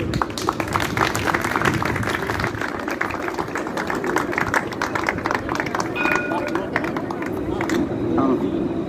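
A crowd claps its hands outdoors.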